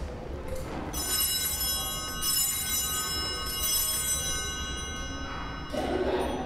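Small altar bells ring out in a large echoing space.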